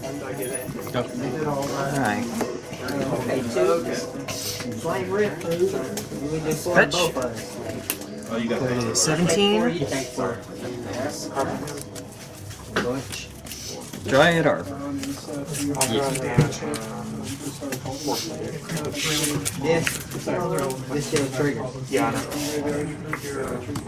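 Playing cards rustle and slide as they are shuffled by hand.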